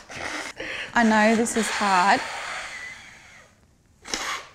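A woman speaks calmly and earnestly up close.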